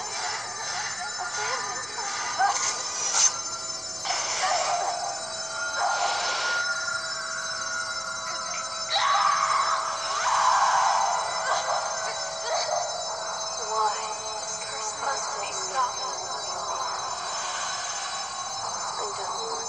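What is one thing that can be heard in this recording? Magical blasts and whooshes burst from a game's sound effects.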